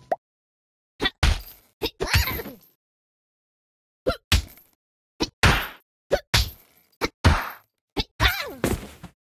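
A cartoon cat punches a punching bag with repeated thuds.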